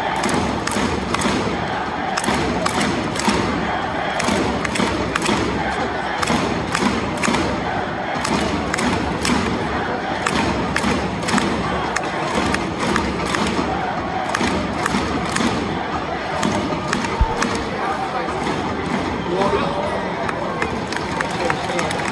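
A large stadium crowd chants and sings outdoors.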